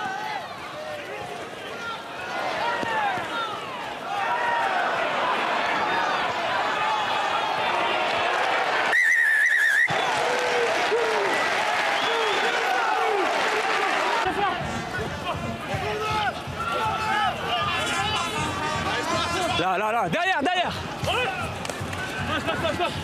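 A large crowd cheers in an open stadium.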